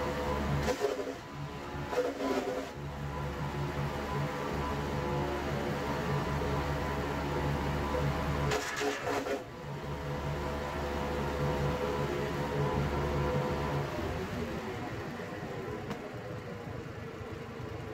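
A garden chipper's petrol engine runs.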